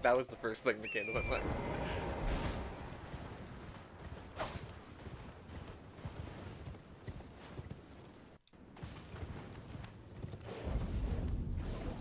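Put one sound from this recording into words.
A horse gallops with rapid hoofbeats.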